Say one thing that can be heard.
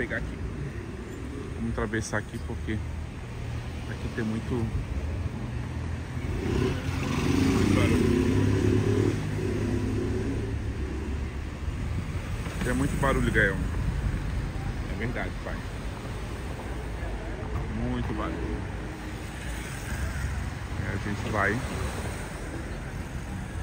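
Car engines hum and tyres hiss on a wet street nearby.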